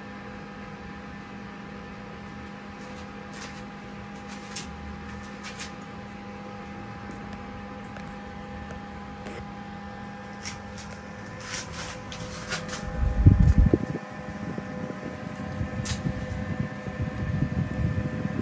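A small electric fan hums steadily.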